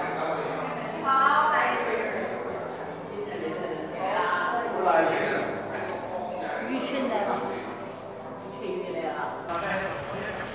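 A young man talks casually, close to the microphone.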